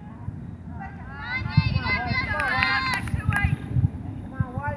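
Spectators call out from the sideline.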